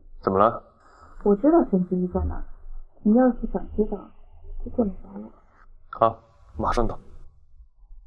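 A young woman speaks calmly on a phone.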